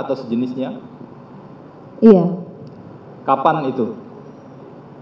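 A woman speaks slowly in short phrases through a microphone.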